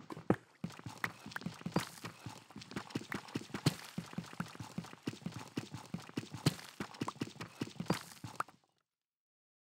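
A pickaxe chips rapidly at stone, with quick crunching knocks.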